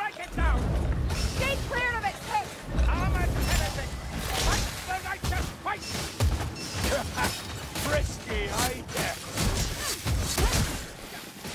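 Creatures snarl and shriek as they attack.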